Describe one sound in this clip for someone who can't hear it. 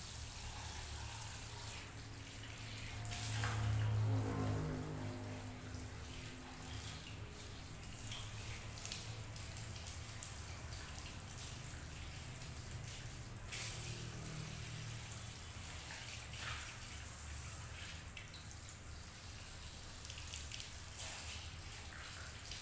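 Water sprays from a hand shower onto wet hair.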